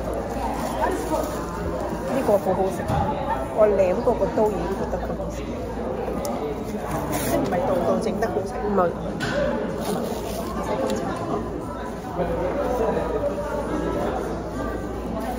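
Paper wrappers rustle and crinkle.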